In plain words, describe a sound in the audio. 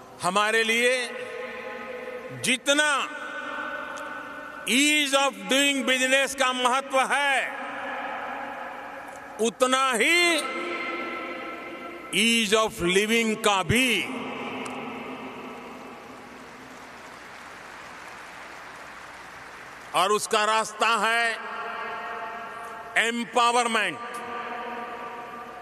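A man speaks with animation into a microphone, echoing through a large hall.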